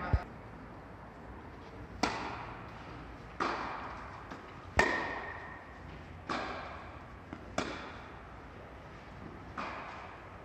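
Tennis balls are struck with rackets, each hit echoing through a large hall.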